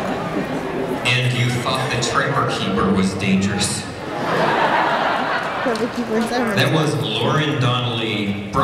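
A performer speaks into a microphone through loudspeakers in a large hall.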